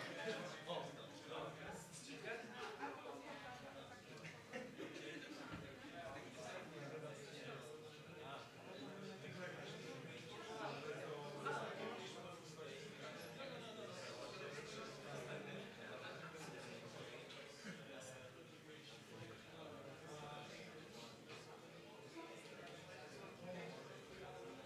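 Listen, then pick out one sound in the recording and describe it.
Music plays through loudspeakers in a room.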